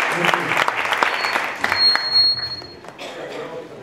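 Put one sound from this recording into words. An audience applauds in an echoing hall.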